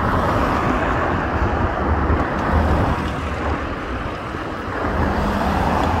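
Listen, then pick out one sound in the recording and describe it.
A van drives past close by on the road.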